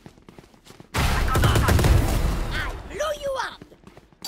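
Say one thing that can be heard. Rapid gunshots crack in a burst.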